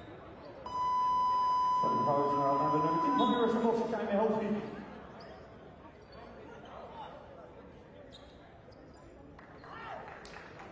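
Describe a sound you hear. A crowd murmurs throughout a large echoing arena.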